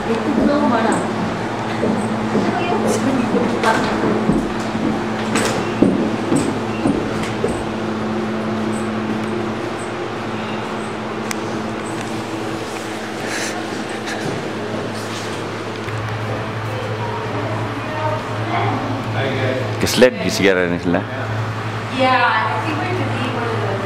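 People chatter in a busy indoor hall.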